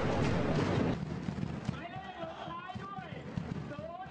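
A large crowd of fans cheers and chants outdoors.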